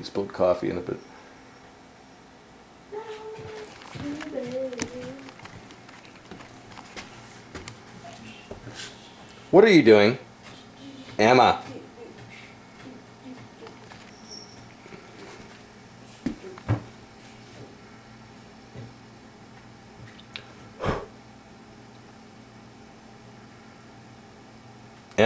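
A cat rustles and shuffles around among papers in a drawer.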